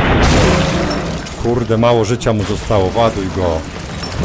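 A monster bursts apart with a loud, wet blast.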